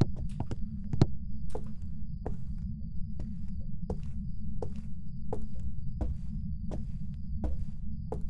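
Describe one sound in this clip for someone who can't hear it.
Slow, heavy footsteps thud on creaking wooden boards.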